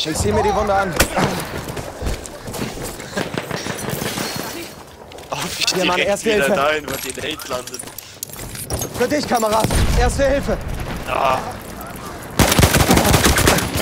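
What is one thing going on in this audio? Shells explode nearby with heavy booms.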